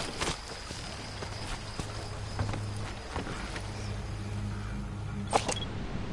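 Footsteps shuffle on dirt.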